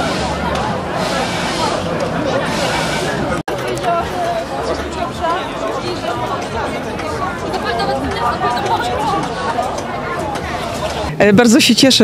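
A crowd of adults chatters outdoors.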